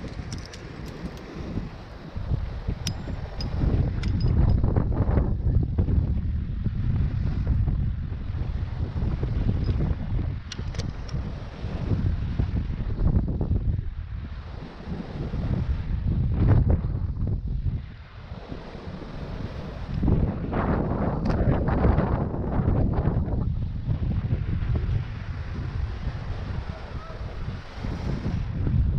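Wind buffets the microphone in gusts outdoors.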